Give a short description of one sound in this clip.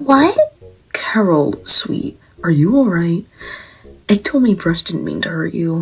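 Another young woman speaks softly and with concern, close up.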